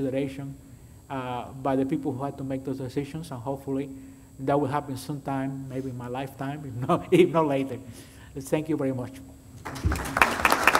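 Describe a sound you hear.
A man speaks calmly over a microphone in a large room.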